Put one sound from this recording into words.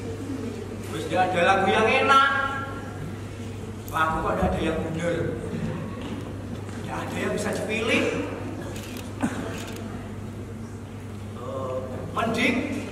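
A young man sings.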